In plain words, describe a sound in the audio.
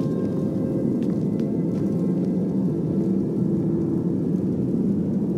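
A magic spell hums steadily with a low drone.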